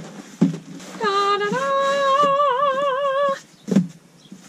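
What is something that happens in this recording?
A young woman lets out a long, wavering, high-pitched squeal.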